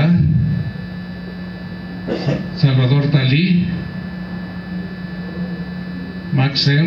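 An elderly man speaks calmly into a microphone over loudspeakers.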